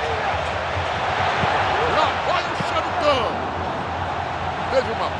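A large crowd roars and cheers steadily in a stadium.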